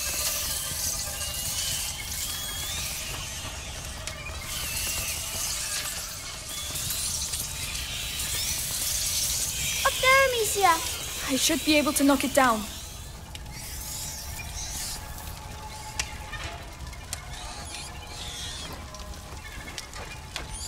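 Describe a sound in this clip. A fire crackles softly in a brazier.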